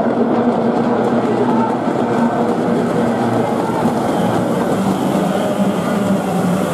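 Racing boat engines drone loudly and steadily.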